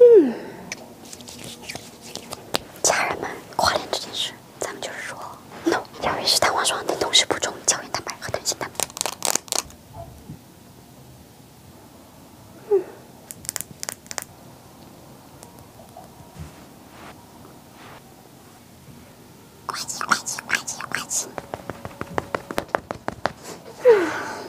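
A young woman speaks with animation, close to a microphone.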